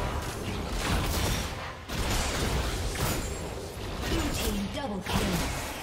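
Game spells and weapons clash and burst in a busy fight.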